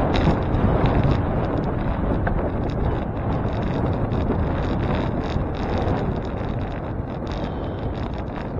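Wind buffets loudly against a moving recorder.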